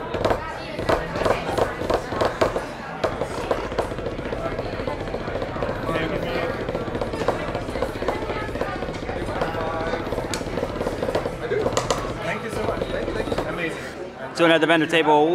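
Men and women chatter in the background of a busy room.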